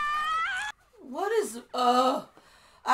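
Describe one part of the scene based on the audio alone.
A young man wails loudly nearby.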